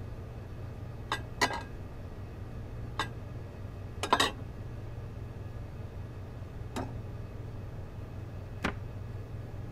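Plastic cups clack softly against a counter.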